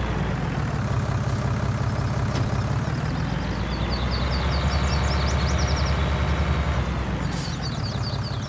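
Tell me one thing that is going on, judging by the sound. A tractor engine rumbles and revs up, then settles.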